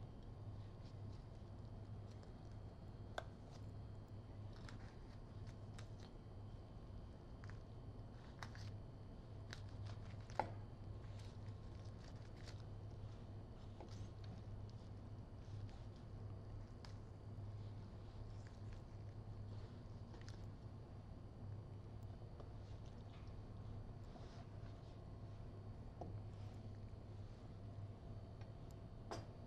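A knife taps and scrapes against a cutting board.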